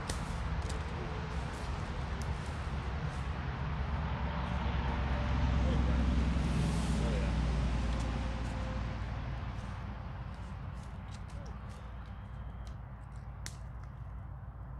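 Outdoors, a steady wind rushes through the trees.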